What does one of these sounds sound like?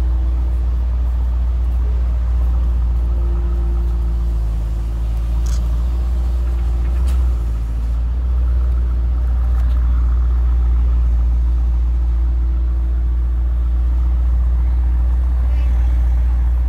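A sports car's engine idles with a deep, steady rumble close by.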